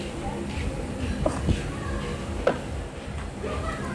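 Plastic toy figures tap and clack on a table.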